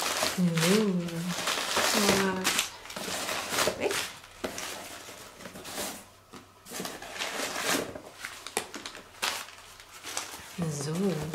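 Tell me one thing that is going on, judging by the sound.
Plastic wrapping rustles and crinkles in a woman's hands.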